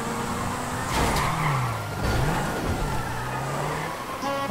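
Tyres screech as a car skids to a stop.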